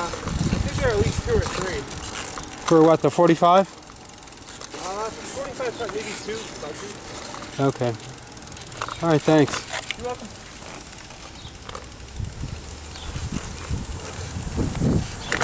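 Road bicycle tyres roll on asphalt.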